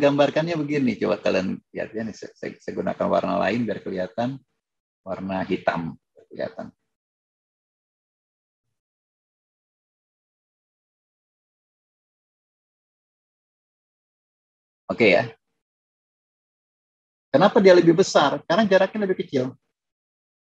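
A man explains calmly over an online call, with long pauses.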